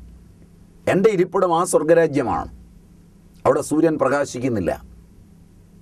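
An elderly man speaks slowly and earnestly, close to a microphone.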